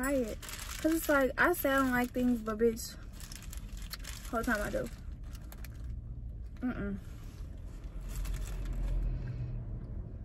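Paper wrappers rustle and crinkle.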